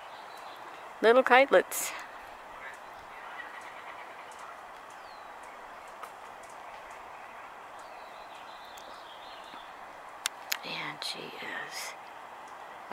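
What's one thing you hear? A bird calls loudly from a treetop in short bursts.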